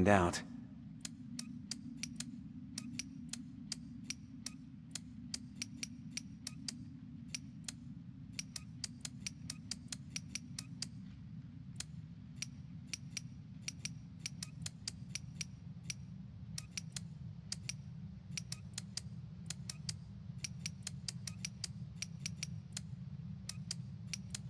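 Metal switches on a padlock click sharply, again and again.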